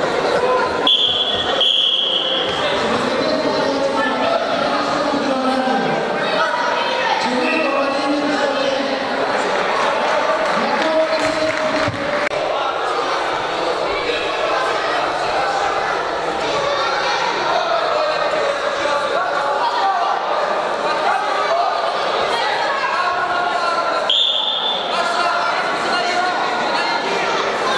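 A crowd of spectators murmurs and chatters in an echoing sports hall.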